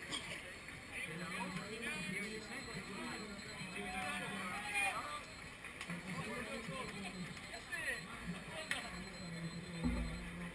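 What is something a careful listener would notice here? A crowd of spectators cheers and chatters nearby outdoors.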